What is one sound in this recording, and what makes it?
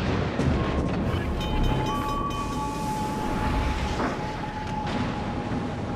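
Sea water rushes against a moving ship's hull.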